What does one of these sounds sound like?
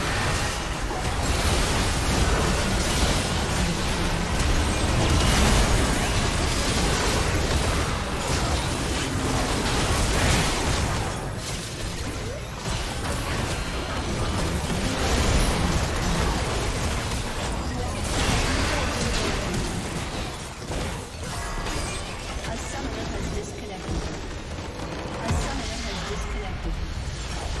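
Spell blasts and weapon clashes crackle and boom in a fierce battle.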